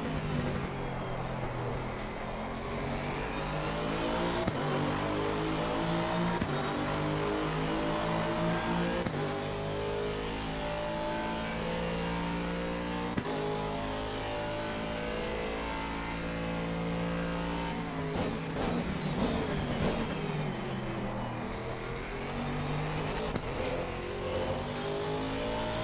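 A racing car engine roars and climbs in pitch through the gears.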